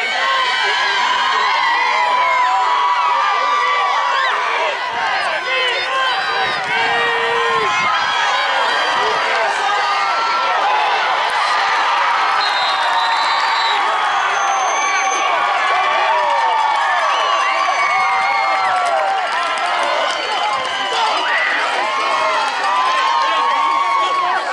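A crowd of people shout and cheer outdoors.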